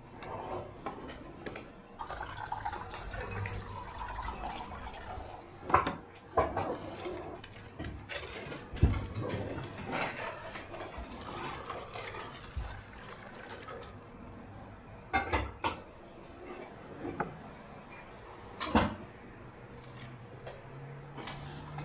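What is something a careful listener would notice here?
Kitchenware clinks as a woman works at a stove.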